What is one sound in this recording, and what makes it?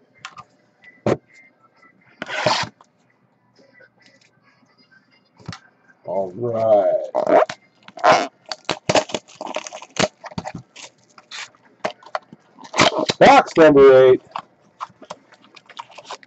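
Cardboard boxes knock and slide on a hard table.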